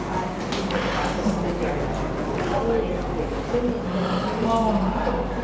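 An elderly man talks steadily, close by.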